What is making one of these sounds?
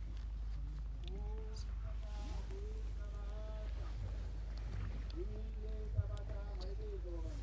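A crowd of men and women sings together outdoors.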